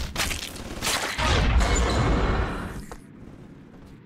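An explosion booms and rumbles.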